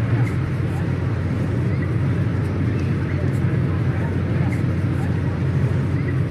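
A diesel train engine rumbles steadily as the train approaches.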